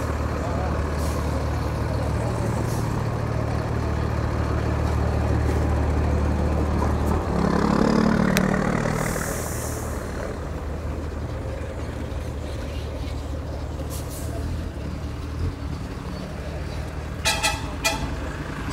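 Outdoor street noise with distant traffic fills the background.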